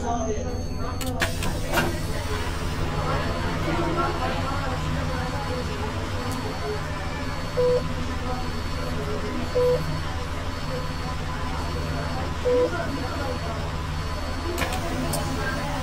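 Bus doors hiss and clunk open and shut.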